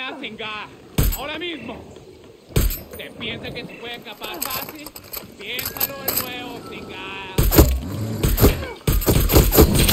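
Rifle shots crack loudly, one at a time.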